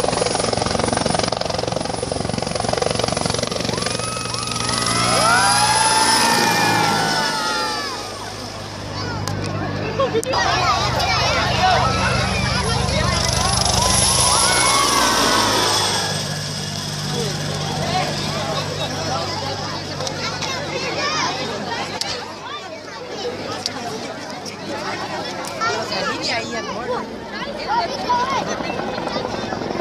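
A helicopter's rotor thumps and its turbine whines as it flies low past.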